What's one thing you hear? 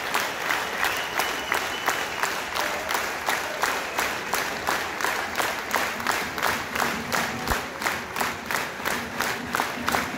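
A large crowd chants loudly in an open stadium.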